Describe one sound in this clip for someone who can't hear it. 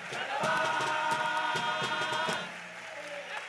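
A men's choir sings loudly and together in a large hall, then stops.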